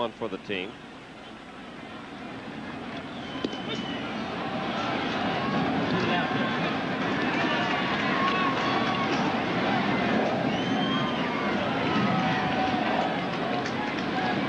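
A large crowd cheers and roars in a stadium, growing louder.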